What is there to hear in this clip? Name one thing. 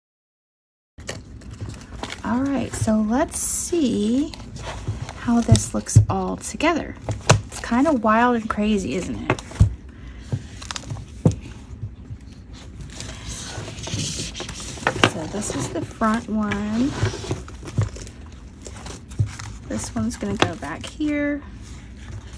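Paper pages rustle and flap as they are leafed through.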